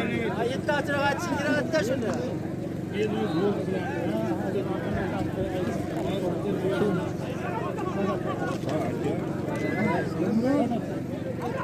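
Many horses trample the ground in the distance.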